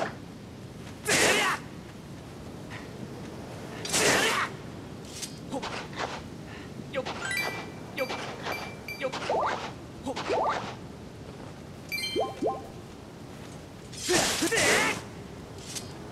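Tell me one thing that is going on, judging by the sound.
A sword swishes through the air several times.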